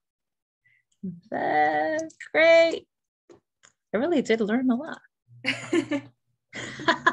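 A young woman talks cheerfully over an online call.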